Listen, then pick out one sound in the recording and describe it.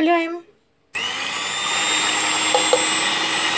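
An electric mixer whirs steadily.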